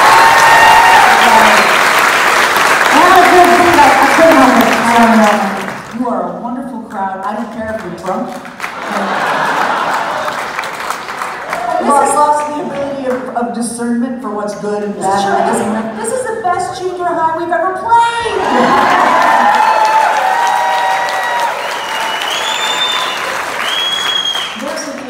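A woman sings through a microphone in a large hall.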